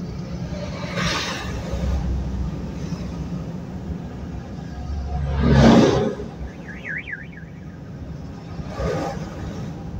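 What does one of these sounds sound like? Passing trucks rush by close alongside.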